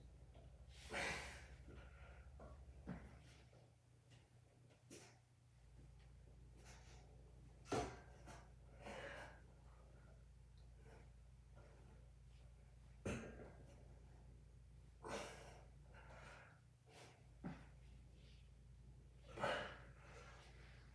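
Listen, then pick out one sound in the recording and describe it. A man exhales sharply and loudly, close by.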